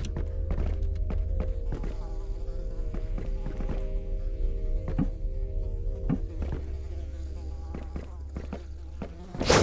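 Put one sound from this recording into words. Small feet patter quickly on hard stone paving.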